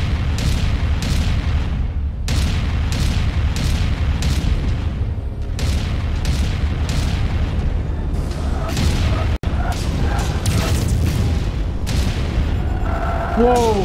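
Heavy weapons fire in rapid, repeated bursts.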